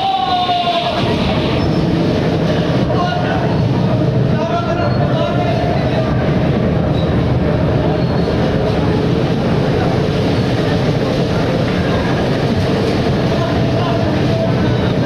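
Bumper cars hum steadily as they drive around.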